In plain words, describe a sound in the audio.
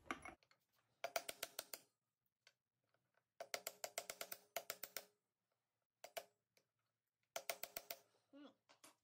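A hand tool clicks rapidly against a metal bolt in short bursts.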